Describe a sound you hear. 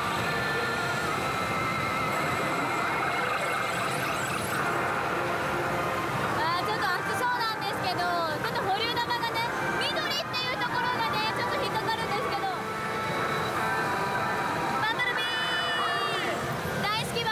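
Pachinko machines chime and play loud electronic music and sound effects.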